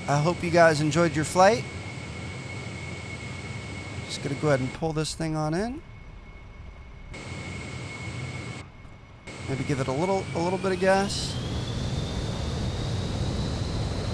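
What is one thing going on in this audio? A steady jet engine whine hums in the background and rises in pitch.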